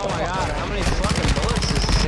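An automatic rifle fires in bursts.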